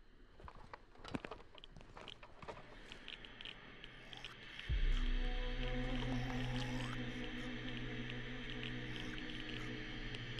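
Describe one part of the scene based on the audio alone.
A person breathes heavily through a gas mask.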